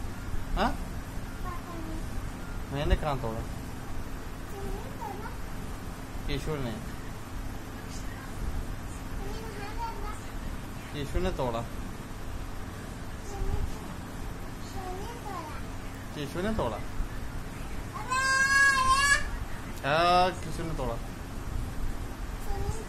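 A little girl babbles and sings softly, close by.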